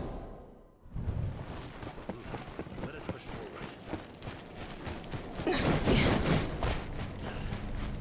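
Footsteps run quickly over dry dirt.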